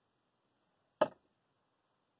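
A metal ring clinks once as it is handled.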